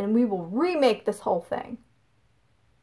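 A young woman speaks close up with rising, exaggerated emotion.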